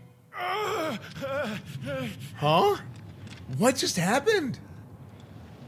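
A man cries out loudly and in anguish, close by.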